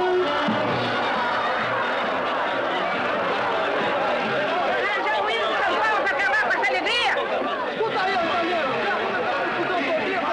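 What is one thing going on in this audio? A crowd of people shouts and chatters excitedly.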